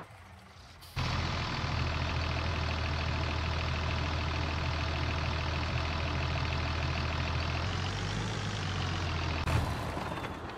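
A tractor engine idles steadily.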